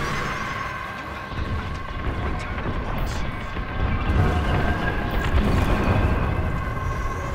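A spacecraft engine hums and roars steadily.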